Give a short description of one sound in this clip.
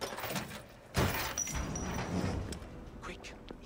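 A heavy metal door scrapes and creaks open.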